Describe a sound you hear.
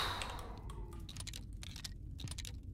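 Shells click into a shotgun as it is reloaded.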